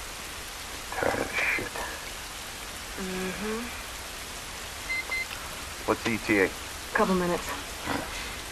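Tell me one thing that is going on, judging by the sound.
A man speaks gruffly through a gas mask.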